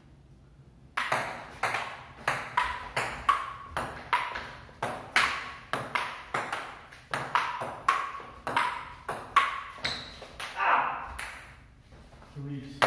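A ping pong ball clicks rapidly back and forth on paddles.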